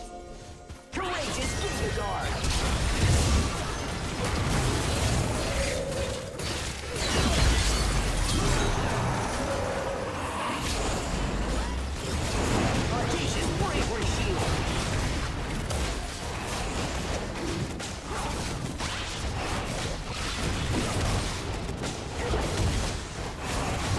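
Game spell blasts and weapon hits crackle and thud in a fast fight.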